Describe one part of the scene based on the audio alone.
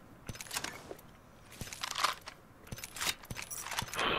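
Menu items click in quick succession.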